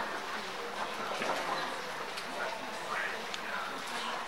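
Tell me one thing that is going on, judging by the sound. Porcelain teacups clink softly.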